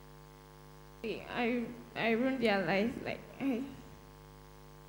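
A woman answers quietly through a microphone.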